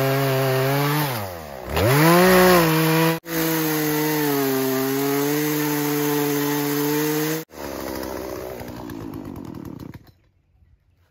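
A chainsaw engine revs loudly, dips, then roars steadily before winding down.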